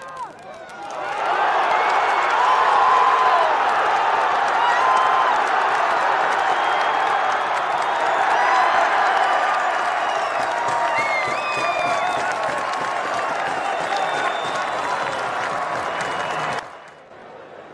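A large crowd cheers loudly in a stadium, outdoors.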